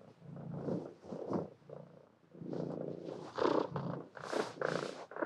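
Two kittens growl and chirp softly at close range while they play.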